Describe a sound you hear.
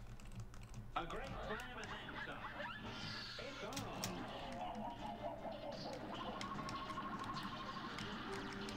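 Lively cartoon music plays.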